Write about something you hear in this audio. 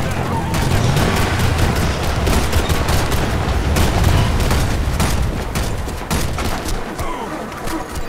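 Gunfire rattles in quick bursts and booms.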